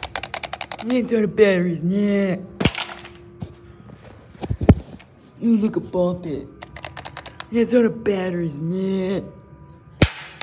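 An electronic toy plays loud beeping tones and a synthetic voice.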